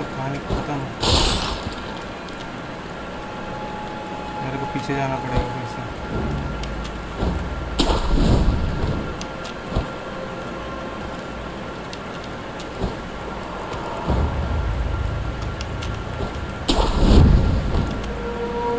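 A sudden whoosh sweeps through the air several times.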